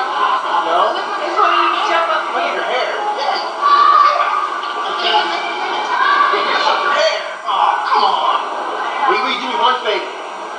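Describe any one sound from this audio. Several young people chatter in a noisy crowd.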